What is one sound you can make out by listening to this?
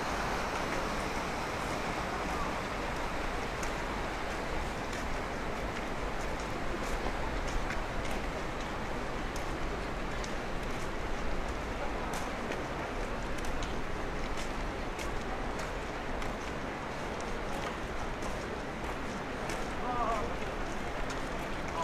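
Water trickles over stones in a shallow stream.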